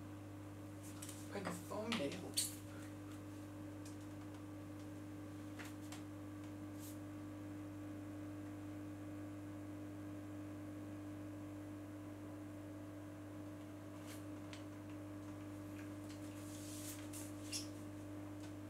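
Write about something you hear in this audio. A small plastic device clicks and rattles as it is handled.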